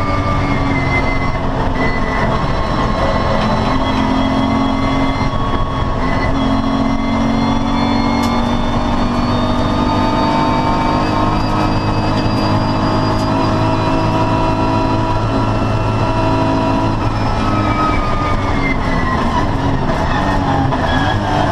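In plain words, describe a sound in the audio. A racing car engine roars loudly from inside the cabin, its pitch rising and falling as the gears change.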